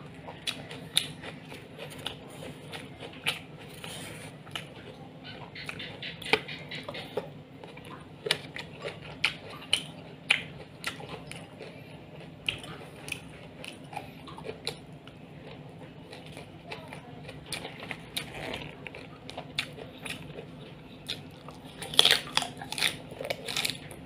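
A man chews and smacks his lips loudly, close up.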